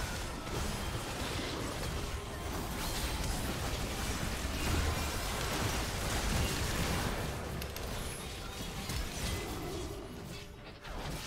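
Spell effects crackle and burst in a fast fight.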